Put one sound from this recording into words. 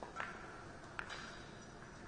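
Billiard balls clack together on the table.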